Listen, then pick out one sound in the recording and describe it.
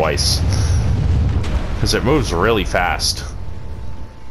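A heavy sword swooshes through the air.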